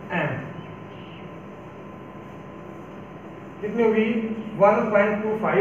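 A man speaks calmly, explaining, close by.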